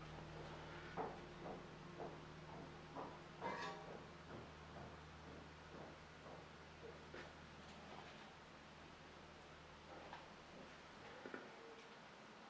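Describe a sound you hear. A brush dabs and taps softly on canvas.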